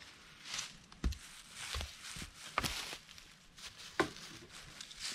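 Wooden poles knock against each other.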